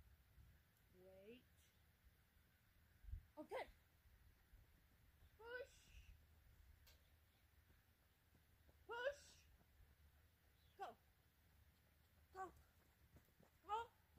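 A woman calls out short commands to a dog from a distance outdoors.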